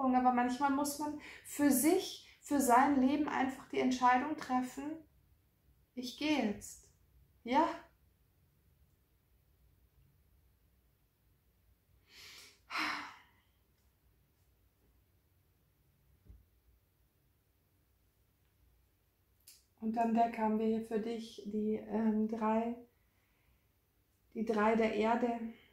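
A young woman speaks calmly and closely into a microphone, with pauses.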